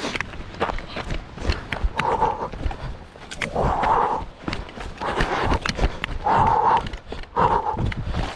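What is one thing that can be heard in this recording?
Trekking pole tips click against stones and earth.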